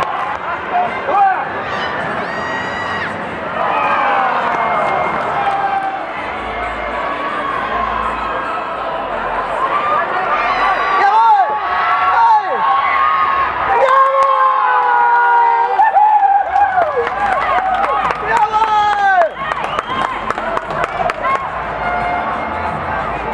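A crowd of young fans chants and sings loudly nearby, outdoors in a large open stadium.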